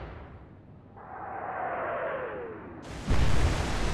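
Incoming shells whistle down with a falling pitch.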